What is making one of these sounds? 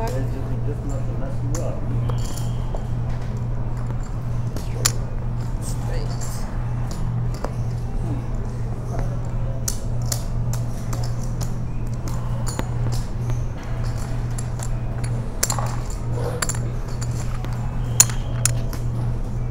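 Poker chips click and clatter on a table.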